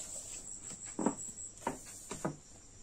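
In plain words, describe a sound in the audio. A plastic ruler is set down on a cloth with a soft tap.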